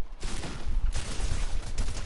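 A gun fires a single sharp shot.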